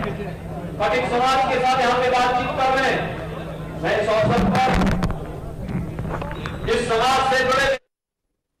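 A man speaks forcefully into a microphone over a loudspeaker.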